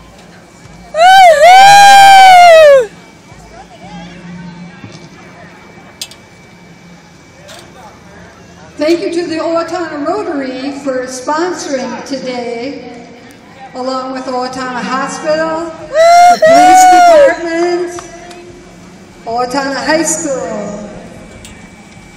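A man nearby shouts loud cheers of encouragement.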